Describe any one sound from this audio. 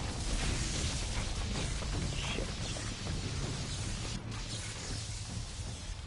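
Electricity crackles and sizzles.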